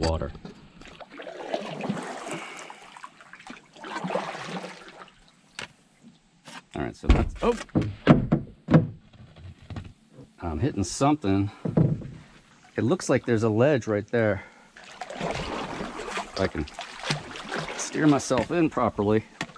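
A paddle splashes and drips in calm water.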